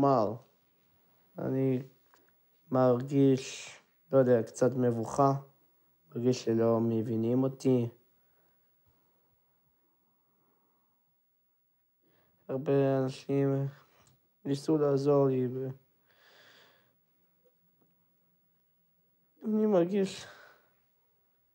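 A young man speaks calmly and hesitantly, close to a microphone.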